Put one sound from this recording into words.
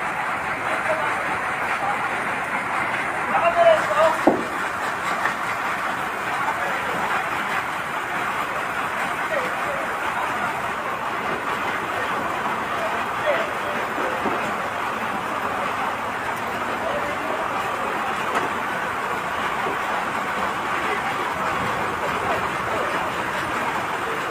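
A fire truck engine runs steadily close by.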